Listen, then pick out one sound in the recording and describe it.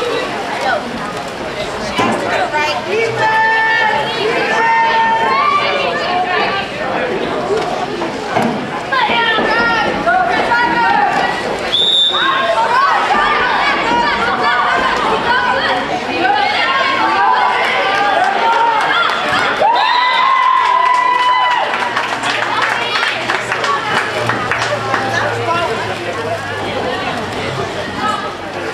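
Players shout and call out across an open pool, outdoors.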